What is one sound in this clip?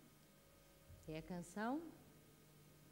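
A woman speaks briefly through a microphone.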